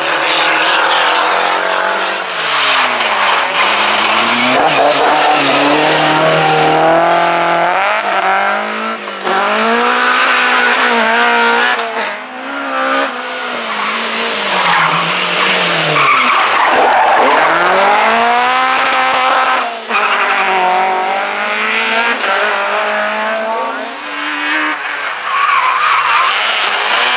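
A rally car engine roars loudly, revving up and down again and again.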